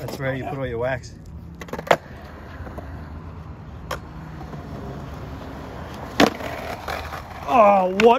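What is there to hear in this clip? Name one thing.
Skateboard wheels roll and rumble across smooth concrete.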